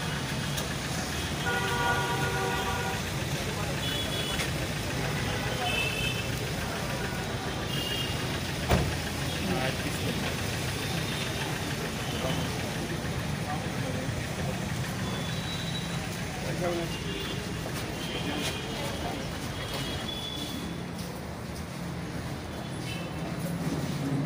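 A group of men and women chat in low voices nearby.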